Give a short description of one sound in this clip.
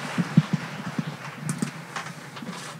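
A microphone knocks and bumps as it is adjusted.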